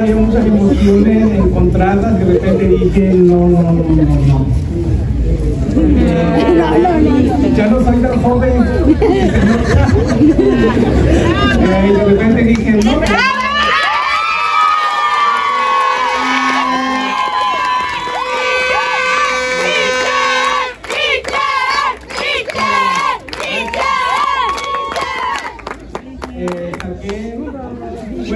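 A woman sings loudly into a microphone through loudspeakers.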